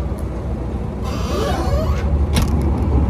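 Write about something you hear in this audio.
Air hisses briefly from a tyre pump.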